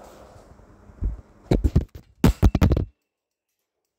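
A hand bumps and rubs against the microphone with loud knocks.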